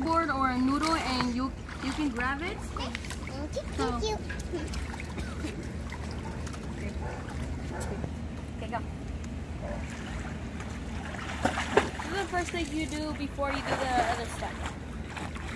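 Water splashes as children swim.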